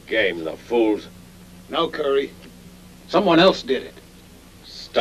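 Another man answers calmly, close by.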